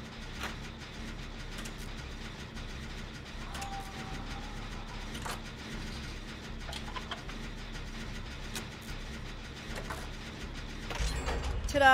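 A machine rattles and clanks steadily.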